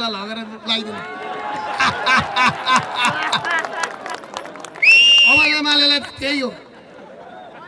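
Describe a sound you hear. A man speaks loudly and forcefully into a microphone, heard over a loudspeaker outdoors.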